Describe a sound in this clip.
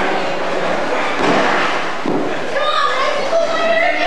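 A body thuds onto a wrestling mat.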